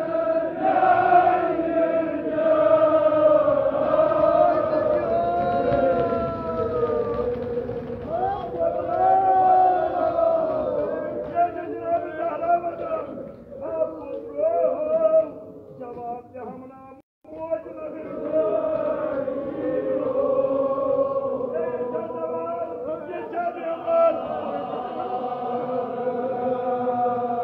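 A crowd of men chants together loudly in an echoing hall.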